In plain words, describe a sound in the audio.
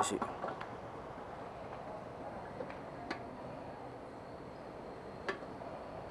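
Fuel gushes from a pump nozzle into a tank.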